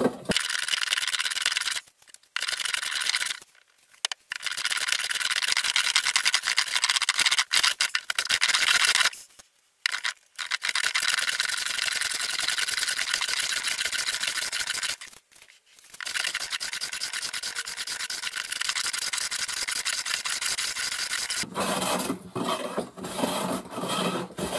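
A hand plane shaves wood in long, rasping strokes with short pauses between them.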